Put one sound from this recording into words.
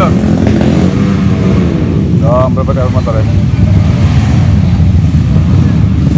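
Motorcycle engines rumble and idle loudly nearby.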